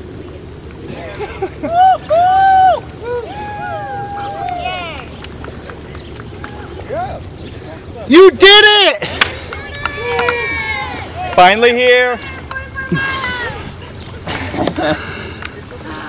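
Young women cheer and shout from a canoe on the water.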